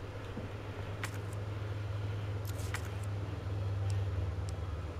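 Short electronic clicks sound.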